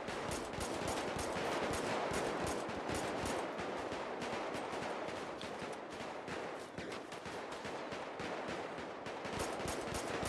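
A gun fires a series of shots.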